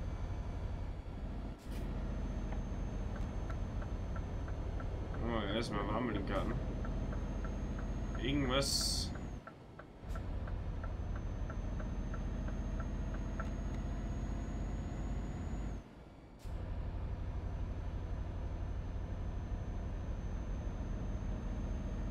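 A truck engine rumbles low and steady while driving.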